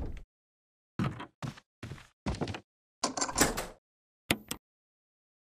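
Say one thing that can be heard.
Footsteps thud up wooden stairs at a steady pace.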